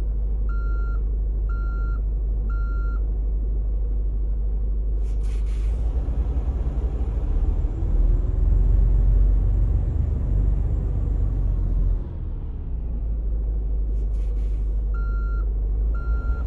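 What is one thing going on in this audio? A truck engine rumbles steadily and revs up as the truck pulls away.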